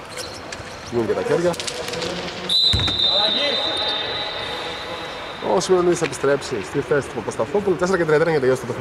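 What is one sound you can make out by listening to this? A man talks loudly in a large echoing hall.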